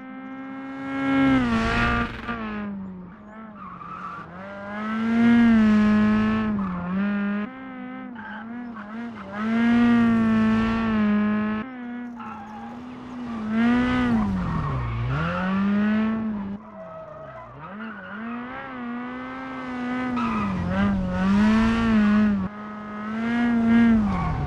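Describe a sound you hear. A rally car roars past up close and fades away.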